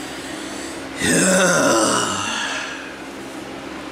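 A man groans loudly and close up.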